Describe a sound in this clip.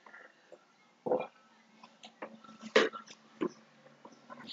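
A plastic bottle knocks and crinkles as it is handled.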